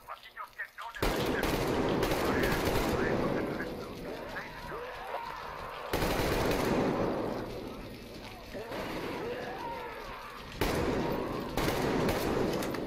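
An automatic rifle fires loud, rapid bursts.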